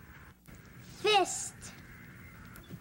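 A young girl speaks close by.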